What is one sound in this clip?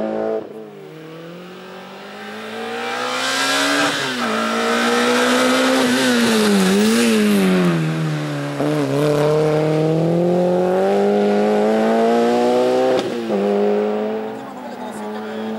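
A racing car's engine roars and revs up and down as the car climbs past.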